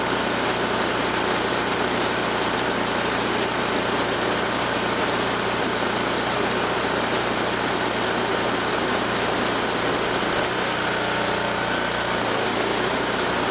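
A small snowblower engine runs loudly at a steady idle, close by.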